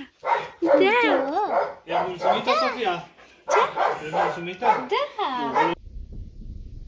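A puppy whines and yelps in high-pitched cries close by.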